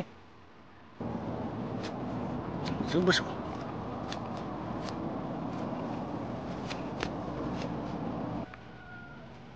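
Hands tear weeds out of the soil with a rustle.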